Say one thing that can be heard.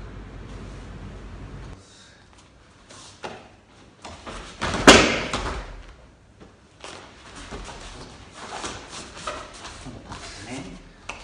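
Bare feet shuffle and stamp on a padded mat.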